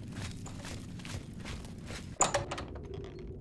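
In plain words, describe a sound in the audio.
A heavy wooden door opens with a thud.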